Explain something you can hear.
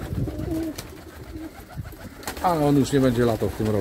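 Pigeons flap their wings in a flurry.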